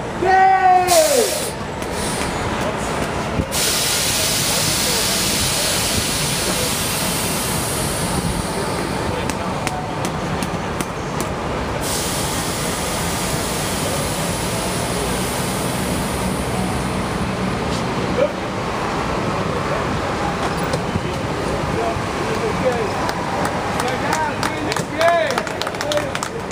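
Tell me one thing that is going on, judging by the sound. A crowd of men and women cheers and chatters outdoors.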